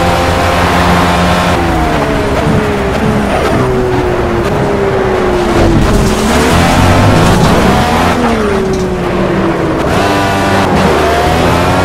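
A racing car engine roars, its pitch dropping as the driver shifts down and climbing again as it speeds up.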